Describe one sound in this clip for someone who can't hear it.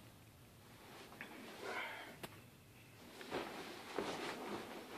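Bedcovers rustle as a person stirs in bed.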